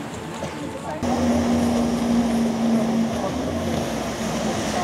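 A jet ski engine drones across the water.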